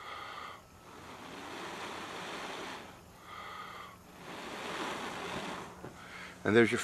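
A man blows hard in long breaths.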